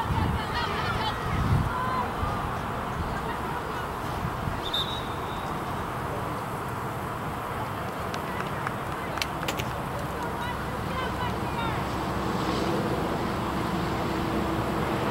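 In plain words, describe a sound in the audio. Wind blows steadily across an open outdoor space.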